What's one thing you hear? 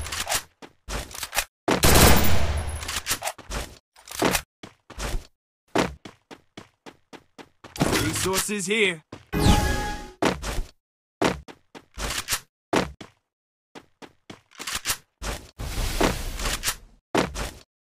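Footsteps run quickly across a hard surface.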